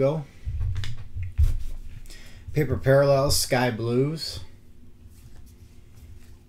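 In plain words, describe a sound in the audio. Trading cards slide and rustle against each other close by.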